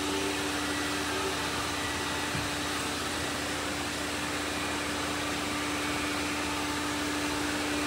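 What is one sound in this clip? A robot vacuum cleaner whirs and hums steadily nearby.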